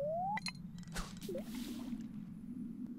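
A bobber plops into the water.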